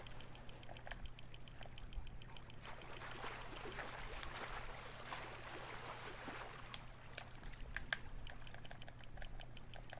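A fishing reel clicks rapidly as the line is wound in.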